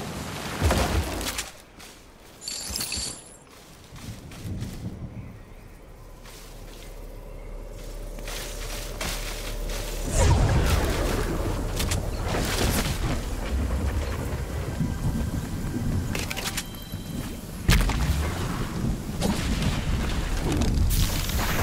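Footsteps rustle through leaves and grass.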